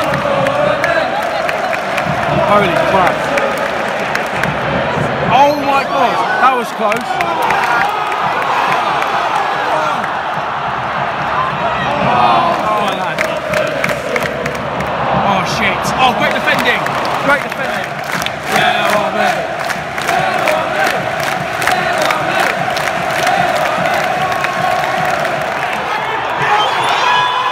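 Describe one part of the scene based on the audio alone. A huge stadium crowd sings and chants loudly, echoing around the stands.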